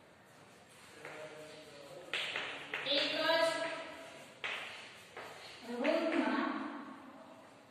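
A young woman speaks clearly, reading out aloud in an echoing room.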